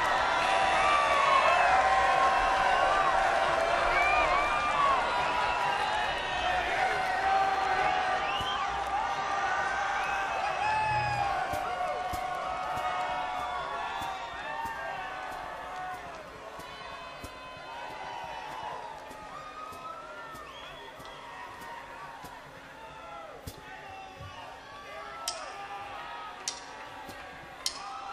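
A large outdoor crowd cheers and whoops, slowly fading.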